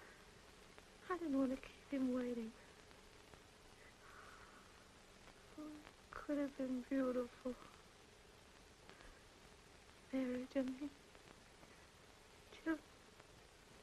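A woman speaks softly and tearfully, close by.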